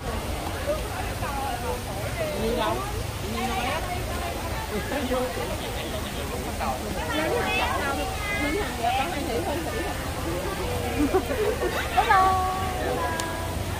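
Several young women talk and chatter close by, outdoors.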